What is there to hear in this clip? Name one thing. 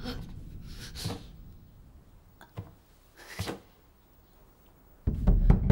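Footsteps knock on a wooden floor in a large echoing hall.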